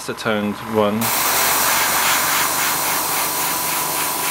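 An airbrush hisses steadily as it sprays.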